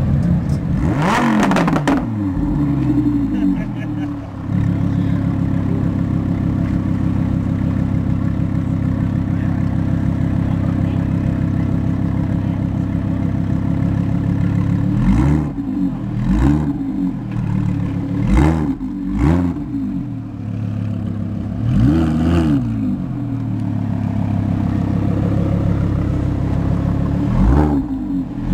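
A sports car exhaust pops and crackles.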